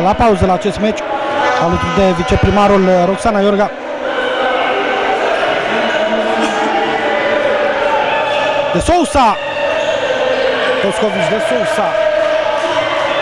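A crowd murmurs and cheers in a large echoing hall.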